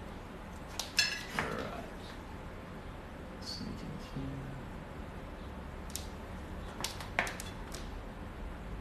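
A paintbrush taps and scrapes against a ceramic plate.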